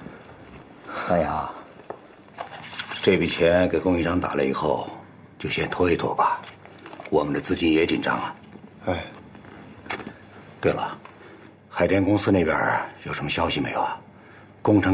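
A middle-aged man speaks calmly and firmly nearby.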